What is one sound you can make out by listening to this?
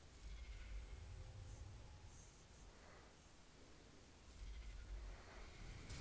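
Sharp magical zaps crackle.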